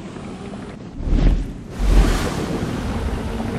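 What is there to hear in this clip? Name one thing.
Water splashes and sprays in loud bursts.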